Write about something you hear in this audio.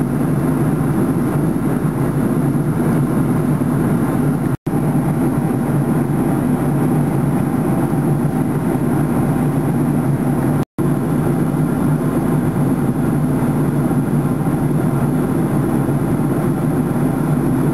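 A jet engine roars steadily inside an aircraft cabin.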